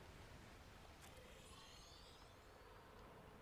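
A jet thruster whooshes briefly.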